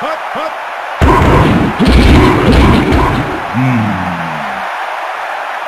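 Football players grunt and thud as they collide in a tackle.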